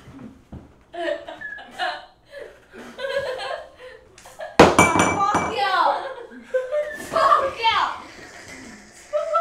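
A group of adults laugh loudly nearby.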